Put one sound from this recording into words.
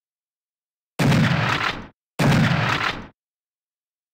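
A gun fires two loud booming shots, each rumbling away.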